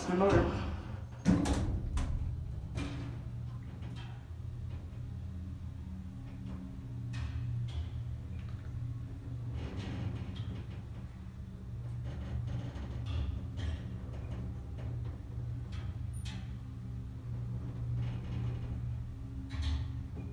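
An elevator motor hums steadily while the car moves.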